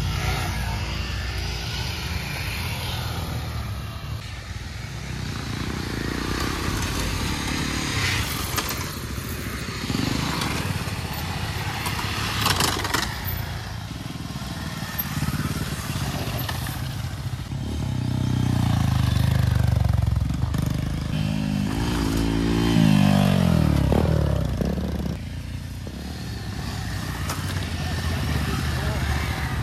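Motorcycle engines rumble and rev outdoors.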